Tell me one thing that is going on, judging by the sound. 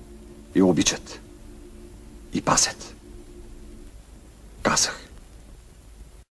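A man declares loudly and forcefully in short bursts.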